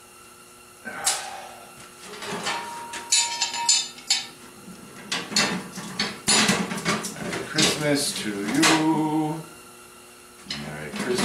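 Metal clanks and scrapes against metal.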